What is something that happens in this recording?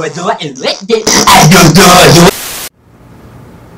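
Loud static hisses briefly.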